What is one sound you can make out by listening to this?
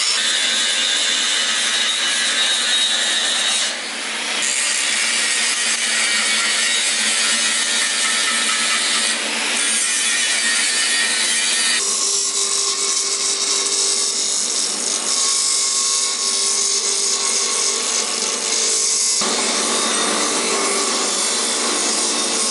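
A metal blade screeches harshly against a grinding wheel.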